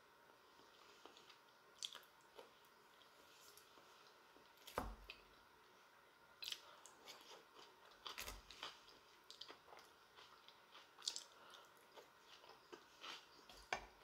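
A woman chews food noisily close to a microphone.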